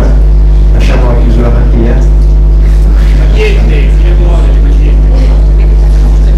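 A middle-aged man speaks into a microphone over a loudspeaker.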